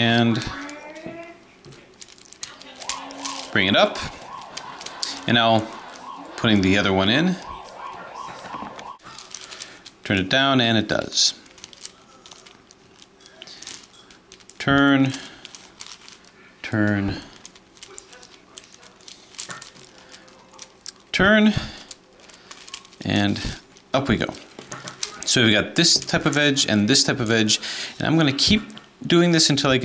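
Plastic puzzle pieces click and clack as they are twisted.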